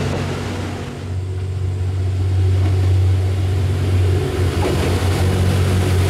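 A diesel train engine rumbles steadily as the train pulls in.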